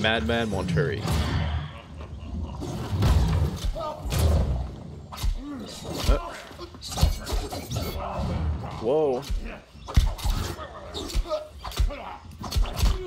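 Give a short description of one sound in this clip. Magic spells burst and whoosh.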